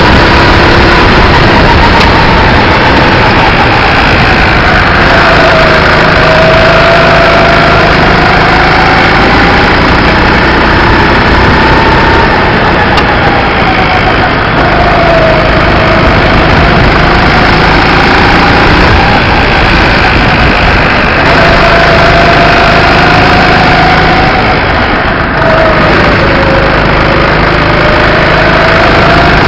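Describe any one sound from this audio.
A go-kart engine buzzes loudly close by, rising and falling in pitch as it speeds up and slows down.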